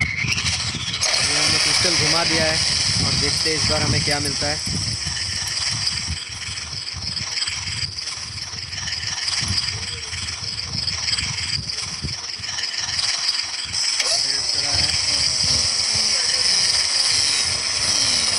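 A magical crystal hums and shimmers as it spins.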